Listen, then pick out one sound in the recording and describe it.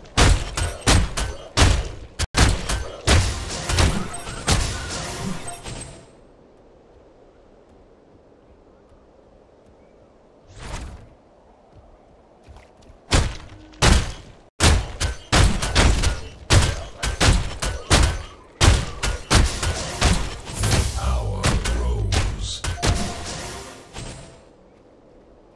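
Weapons clash and strike in quick, heavy bursts of combat.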